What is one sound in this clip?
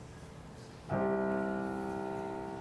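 A keyboard plays a held chord.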